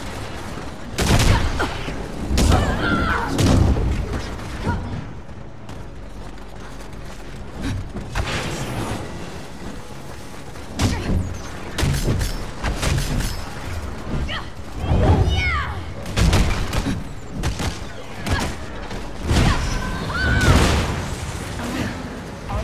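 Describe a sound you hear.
Sci-fi energy weapons blast and blows strike in sharp bursts.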